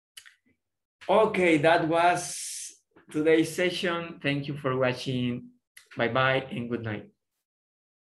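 A young man speaks cheerfully and close by, in short bursts.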